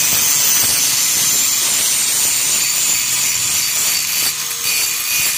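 An angle grinder whines loudly as it grinds metal.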